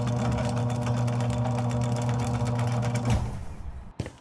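A garage door motor hums steadily as the door rolls shut.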